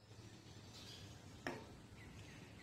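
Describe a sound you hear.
A spoon clinks sharply against a mug.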